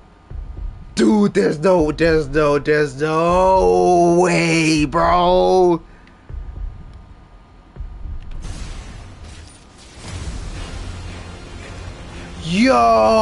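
A young man cries out and groans in strain, close and loud.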